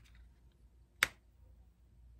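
A card taps down onto a table.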